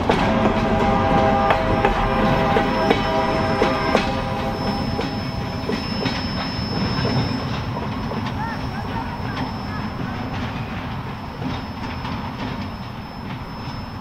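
Train wheels squeal with a thin steady screech.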